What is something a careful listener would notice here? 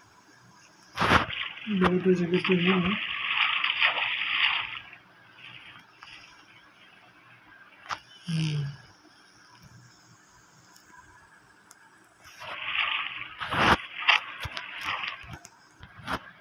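Water splashes and bubbles in short bursts.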